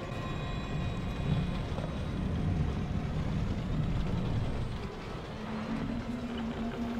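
Machinery hums low and steadily.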